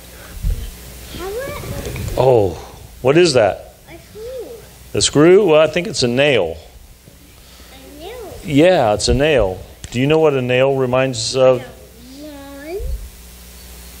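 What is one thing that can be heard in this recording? An elderly man talks warmly and calmly nearby, in a softly echoing room.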